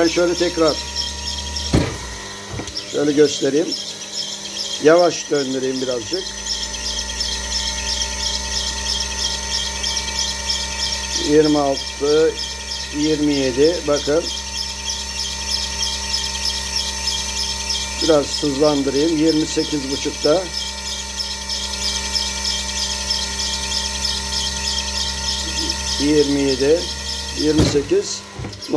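A battery charger hums steadily.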